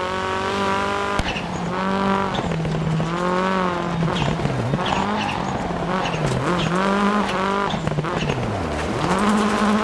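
A rally car engine revs hard, its pitch rising and dropping with gear changes.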